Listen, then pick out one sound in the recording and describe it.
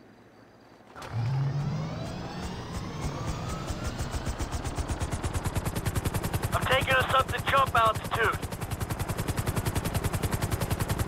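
A helicopter's rotor chops steadily and speeds up.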